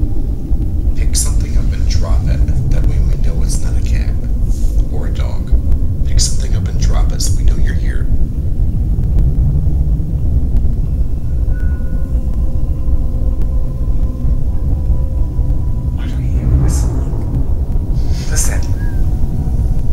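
A man speaks quietly and close by, in a hushed voice.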